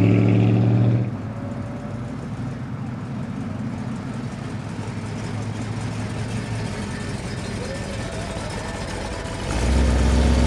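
A car engine idles with a low, throaty burble.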